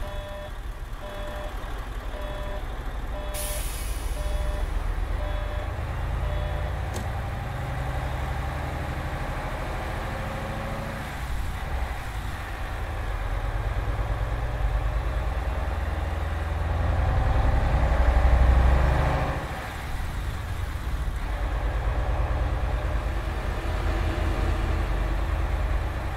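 A bus engine rumbles low and rises and falls as the bus drives along.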